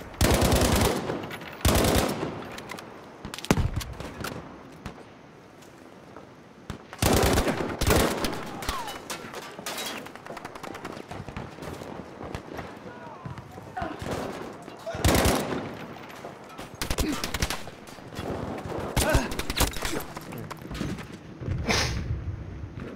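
Gunshots crack in rapid bursts, with echoing booms.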